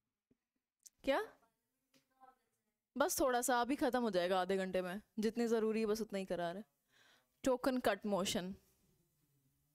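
A young woman speaks with animation into a clip-on microphone.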